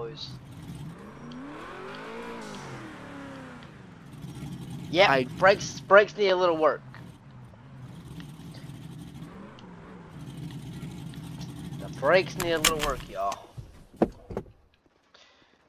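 A car engine idles and revs in short bursts.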